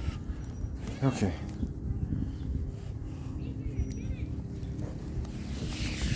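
A hand rubs a dog's fur.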